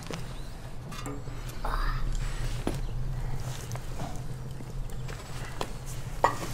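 Metal skewers clink and scrape against a metal grill.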